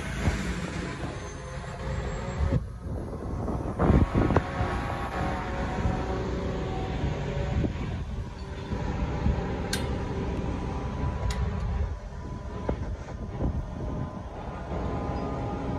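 Wind blows hard and buffets the microphone, high up outdoors.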